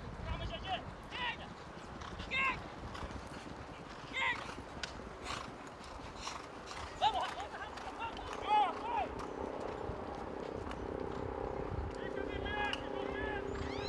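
Horses gallop with hooves thudding on turf.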